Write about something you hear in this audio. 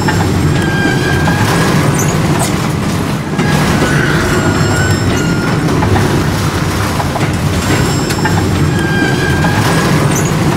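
Metal wheels squeal on rails.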